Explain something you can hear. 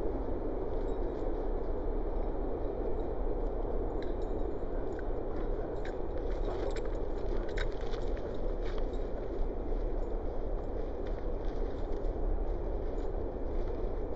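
Dogs' paws patter on grass.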